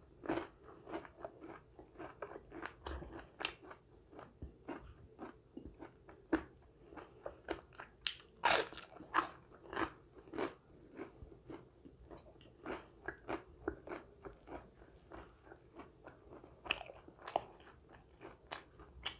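A woman chews and munches food close to a microphone.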